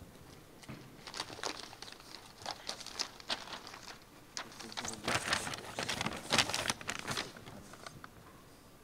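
A man talks quietly nearby, away from a microphone.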